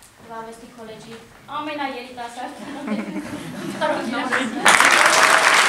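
A woman speaks with emotion into a microphone in an echoing hall.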